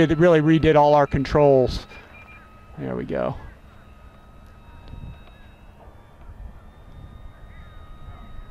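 A model plane's motor whines high overhead.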